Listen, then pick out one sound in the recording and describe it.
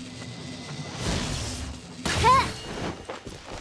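Magic crackles with a sharp electric zap.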